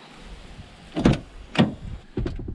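A car door is pulled open with a metallic click.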